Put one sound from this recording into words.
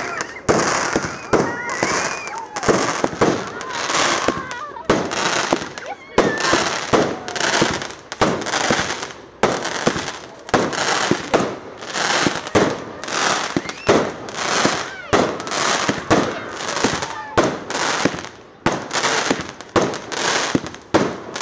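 Firework sparks crackle and sizzle.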